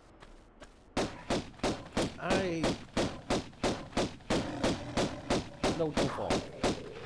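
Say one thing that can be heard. Pistols fire in rapid bursts of shots.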